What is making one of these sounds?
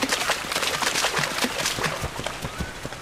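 Water splashes under heavy footsteps.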